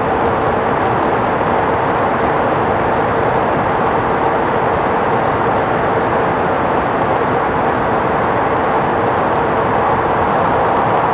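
A car drives fast through a tunnel with a steady roar of tyres and wind.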